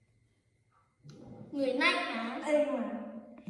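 A boy speaks with animation up close.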